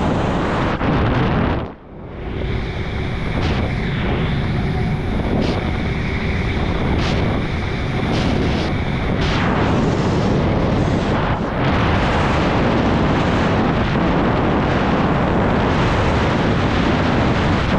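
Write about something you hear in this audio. Strong wind rushes loudly past, high in the air.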